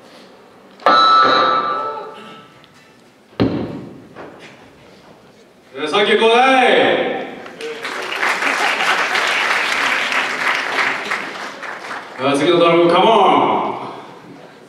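A young man shouts into a microphone over loudspeakers in a large echoing hall.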